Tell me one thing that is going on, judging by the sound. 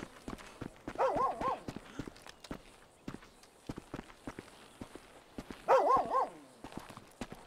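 A creature barks loudly in short bursts.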